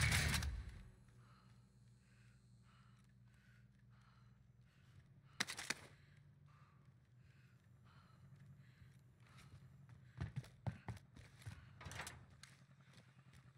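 Footsteps thud steadily across a floor.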